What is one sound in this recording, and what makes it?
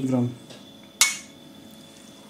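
A metal spoon clinks against an enamel bowl.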